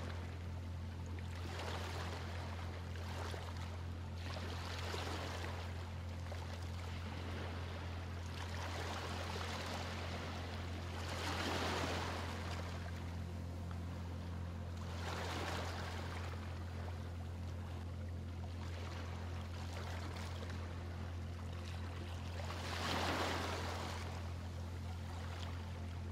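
Small waves wash gently onto a pebbly shore and draw back, in swells that come and go.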